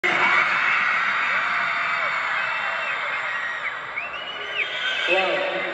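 A crowd cheers and screams loudly at a concert.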